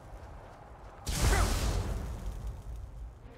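A magic spell bursts with a loud rushing whoosh.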